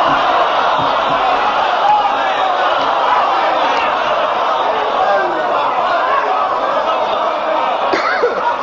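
A man speaks passionately into a microphone, heard through a loudspeaker with echo.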